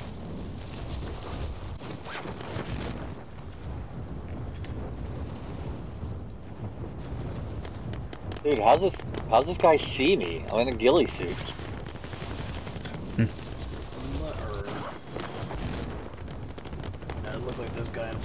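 Wind rushes steadily past during a fall through the air.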